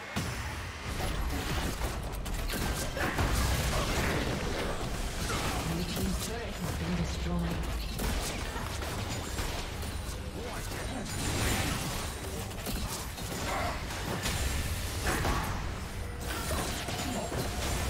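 Spell effects whoosh and crackle during a fight.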